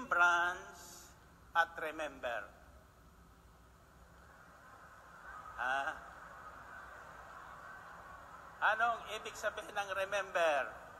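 An elderly man speaks into a microphone in short bursts, heard through a loudspeaker.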